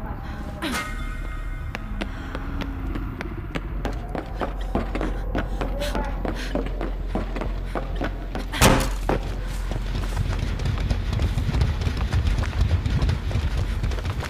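Footsteps run quickly over wooden boards and ground.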